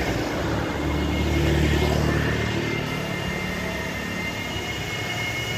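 A motorbike passes close by with a buzzing engine.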